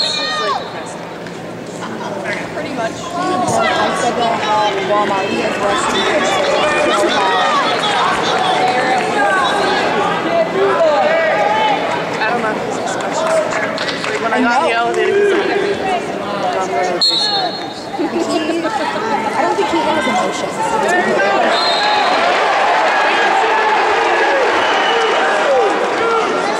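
A crowd of spectators shouts and cheers in a large echoing hall.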